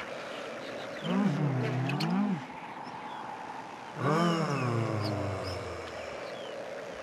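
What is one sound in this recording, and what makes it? A man sings loudly nearby.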